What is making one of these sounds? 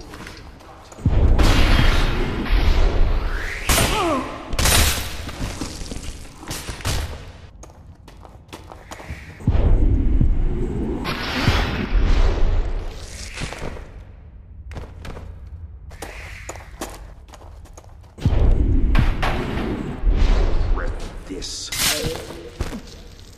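A struggle scuffles and thuds close by in an echoing stone space.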